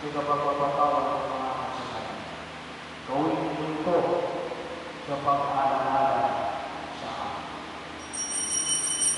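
A man chants in a steady voice through a microphone in an echoing hall.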